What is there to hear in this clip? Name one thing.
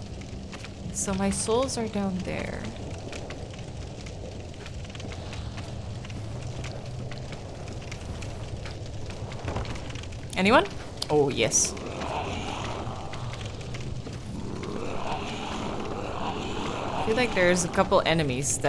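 A young woman talks into a microphone with animation.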